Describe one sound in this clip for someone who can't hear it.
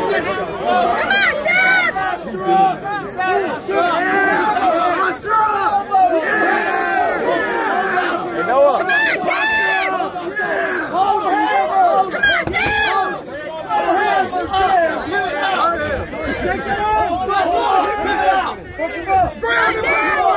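A crowd of men and women shouts and cheers loudly close by, outdoors.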